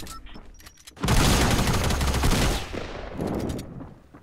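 Gunshots ring out close by.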